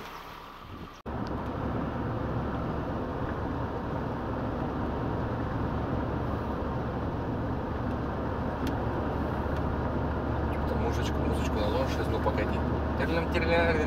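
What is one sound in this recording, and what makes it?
A car engine hums steadily, heard from inside the moving car.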